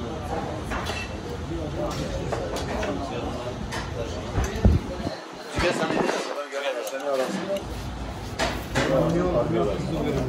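Several men talk and chatter close by.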